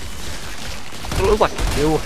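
Rapid gunfire blasts close by.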